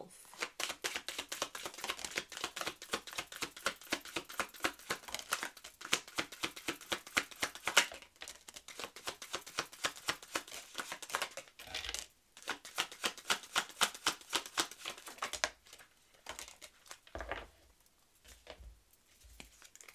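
Small cards are laid down on a table with soft taps.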